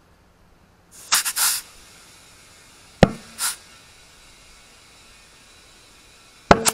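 Compressed air hisses steadily through a hose into a tyre.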